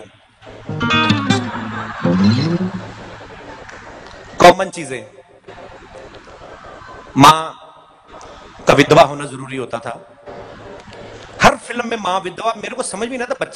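A man speaks with animation into a microphone, heard through loudspeakers in a large echoing space.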